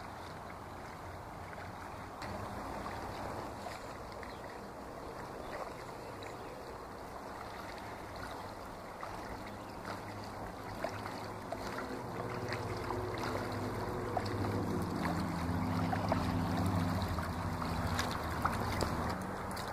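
A kayak paddle dips and splashes softly in water.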